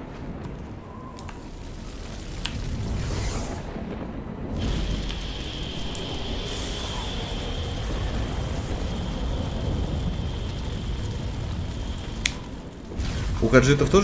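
A large fire roars steadily.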